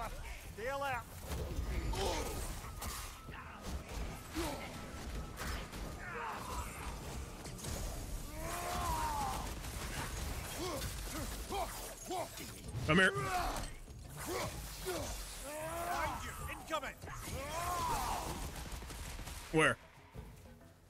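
Heavy blows and weapon strikes land in a fight.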